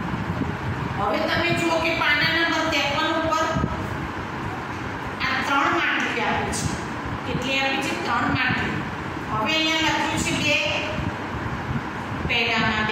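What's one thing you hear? A middle-aged woman speaks clearly, as if teaching, close by.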